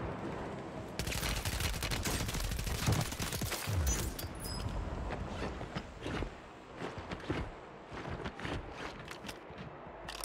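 Rapid gunshots crack and rattle.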